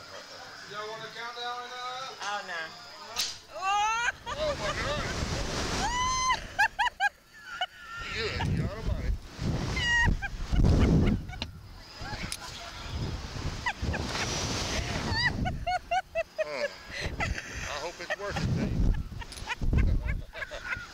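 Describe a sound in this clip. A middle-aged woman screams and laughs loudly close by.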